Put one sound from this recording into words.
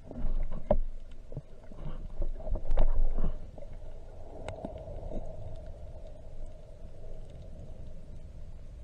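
Water rumbles and swishes dully underwater.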